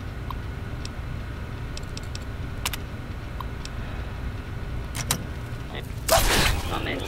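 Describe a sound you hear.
Keys click softly on a computer terminal.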